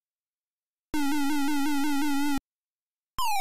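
A toy-like electronic helicopter buzzes with a quick warble.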